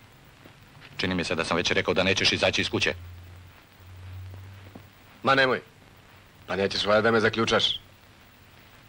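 A middle-aged man speaks nearby with animation.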